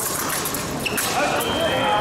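Fencing blades clash sharply.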